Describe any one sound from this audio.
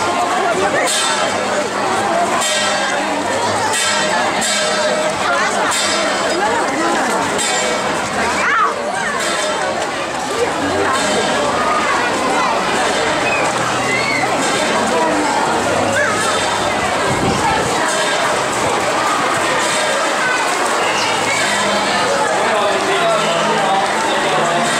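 A large crowd of men and women chatters loudly all around.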